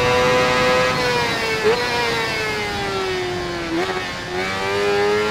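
An inline-four sport bike engine drops in pitch and blips as it downshifts into a corner.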